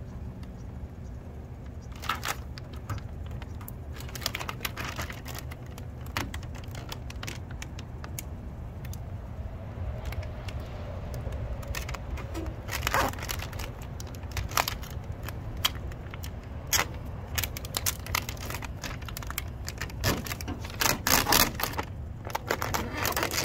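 Plastic film crinkles and rustles under hands.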